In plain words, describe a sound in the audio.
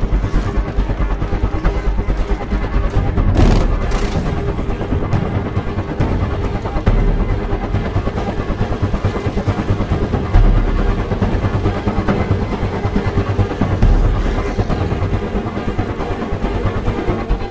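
A propeller engine drones loudly and steadily throughout.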